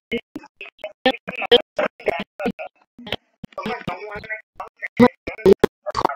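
A boy talks with animation over an online call.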